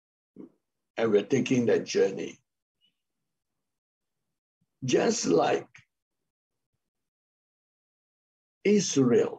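A middle-aged man speaks calmly with pauses, heard through an online call.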